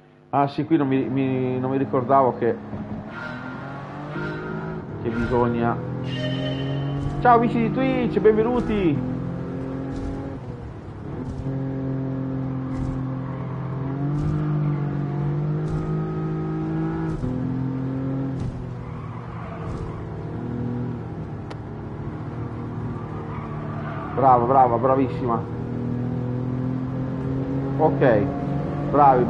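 A car engine hums and revs steadily as the car speeds along.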